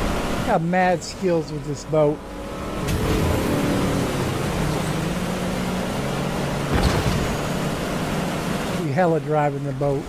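Water splashes and sprays behind a speeding boat.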